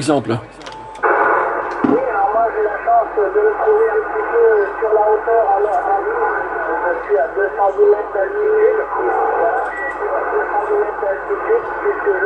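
A man's voice talks through a radio loudspeaker, thin and crackly.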